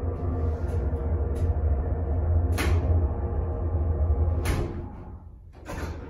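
An elevator car hums steadily as it moves.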